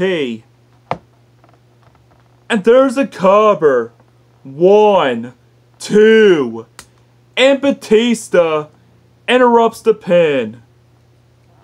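A young boy makes loud, animated character voices close by.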